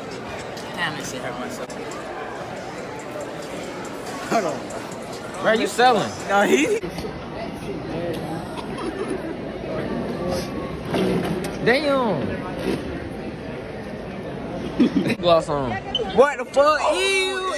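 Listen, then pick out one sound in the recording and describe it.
A chatter of many voices fills a large room.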